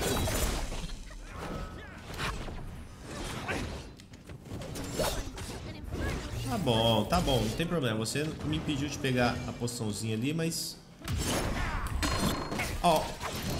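Sharp fighting sound effects crackle and burst in quick bursts.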